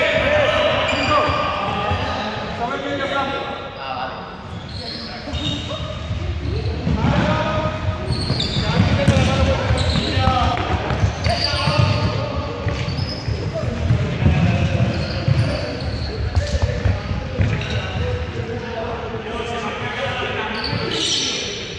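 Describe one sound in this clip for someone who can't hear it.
Trainers squeak and patter on a hard floor as young people run.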